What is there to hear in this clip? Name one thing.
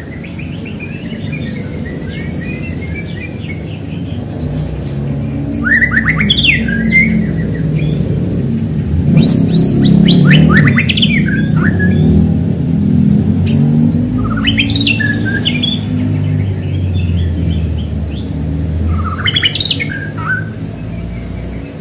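A songbird sings loud, varied phrases close by.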